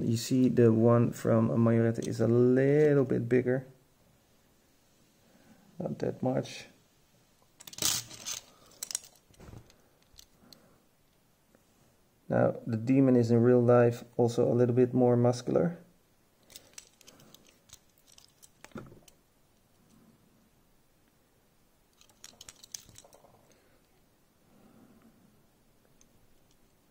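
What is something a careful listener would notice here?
Small plastic toy cars click and tap as hands handle them.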